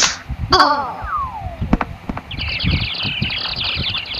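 A cartoon cat falls and thumps onto the floor.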